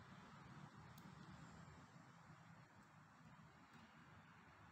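A small plastic connector clicks softly.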